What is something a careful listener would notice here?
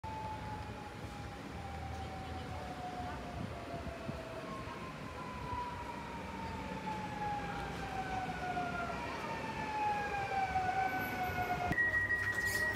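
An electric train approaches slowly with a steady rumble.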